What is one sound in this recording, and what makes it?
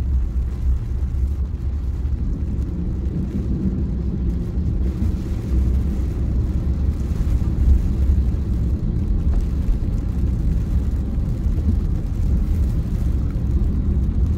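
Rain patters on a car windscreen.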